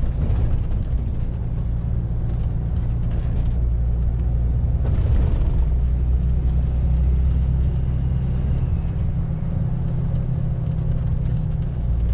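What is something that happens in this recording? A truck's diesel engine hums low and steady from inside the cab.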